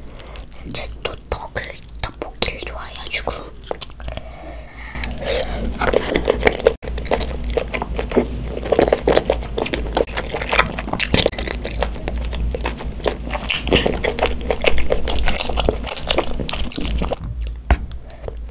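Chopsticks click and scrape against a plastic bowl.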